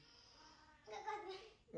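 A young boy speaks briefly nearby.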